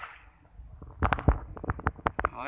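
A fishing weight plops into still water.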